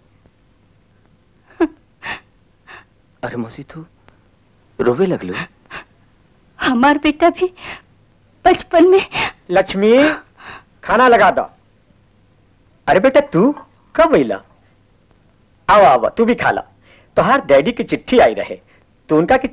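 A middle-aged woman speaks in a pleading, tearful voice.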